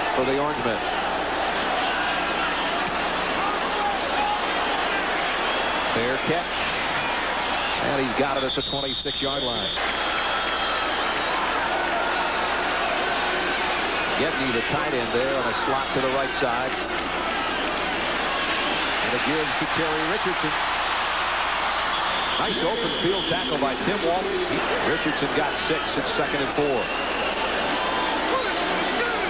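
A large crowd roars and cheers in a big stadium.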